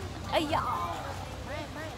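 A young woman exclaims loudly up close.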